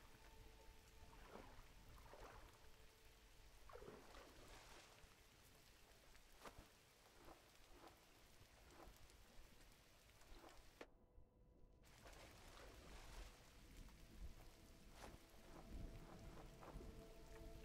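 A bird's wings flap in soft, repeated whooshes.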